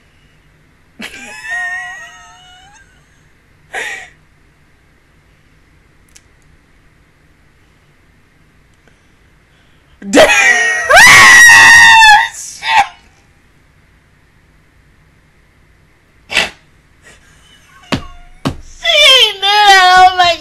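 A young woman laughs loudly and shrieks close to a microphone.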